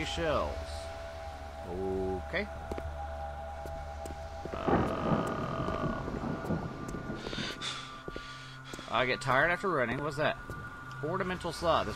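A man speaks with animation into a close microphone.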